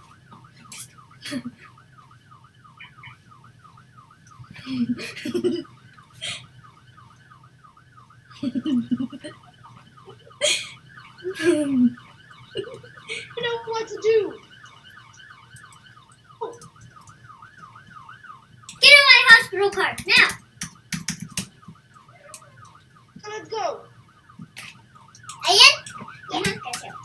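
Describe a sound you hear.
An ambulance siren wails with a fast, even warble.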